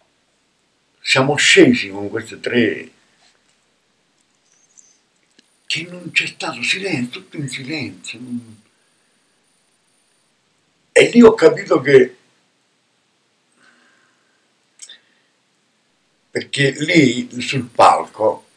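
An elderly man speaks calmly and expressively in bursts, close to the microphone.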